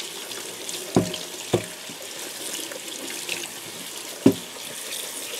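Wet shoes knock against a metal sink.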